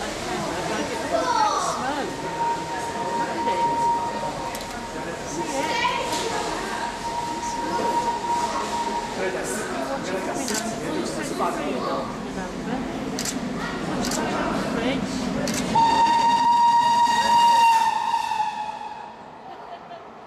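A steam locomotive chuffs loudly as it approaches and passes close by.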